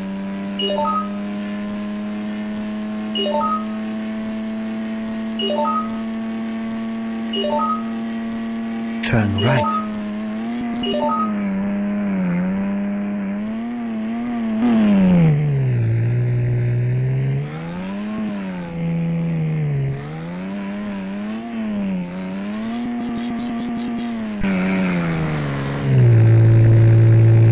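A car engine hums steadily, then revs up and down.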